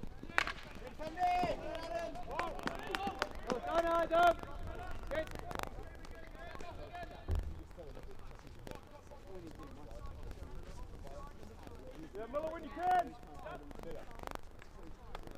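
Hockey sticks strike a ball with sharp clacks.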